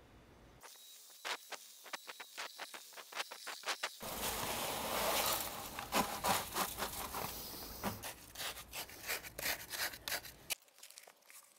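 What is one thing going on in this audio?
A trowel scrapes and knocks in a bucket.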